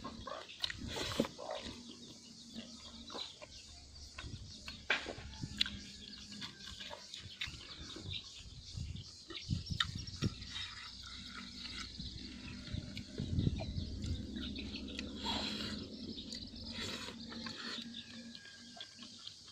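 A man chews food noisily, smacking his lips close by.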